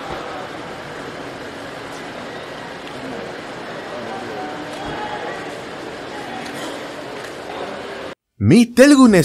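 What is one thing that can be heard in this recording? A crowd of men chatters and murmurs outdoors.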